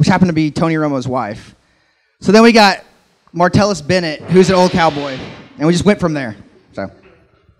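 A man speaks with animation into a microphone over a loudspeaker in a large hall.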